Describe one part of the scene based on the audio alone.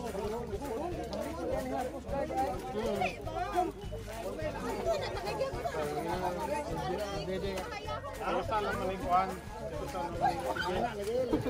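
Water splashes gently around people floating.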